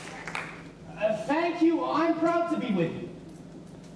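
A young man sings loudly in a large hall.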